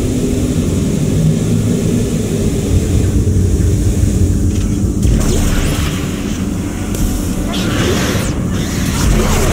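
Jet thrusters roar with a low, steady rumble.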